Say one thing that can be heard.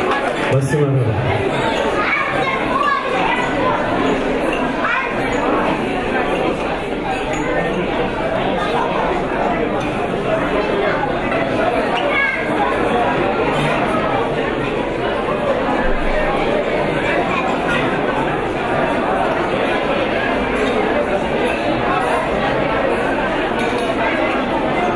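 A crowd of guests chatter loudly in a large echoing hall.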